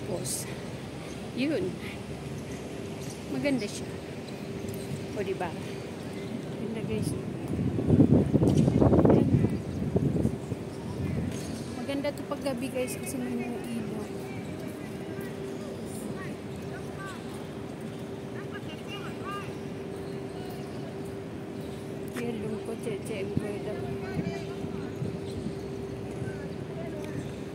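A middle-aged woman talks close to the microphone with animation, outdoors.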